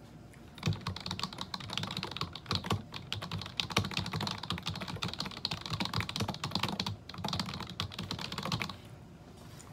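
Fingers tap quickly on a keyboard.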